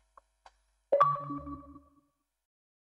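A short descending notification chime sounds.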